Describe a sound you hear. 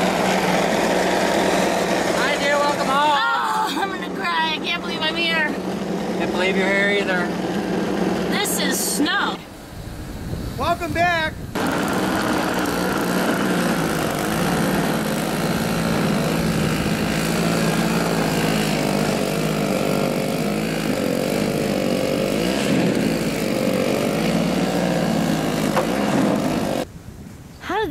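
A snow blower engine runs steadily.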